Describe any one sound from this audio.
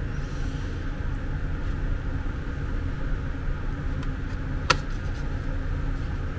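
A metal pick scrapes and clicks against a drive's metal casing.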